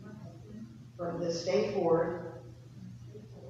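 A man speaks clearly in a large echoing hall.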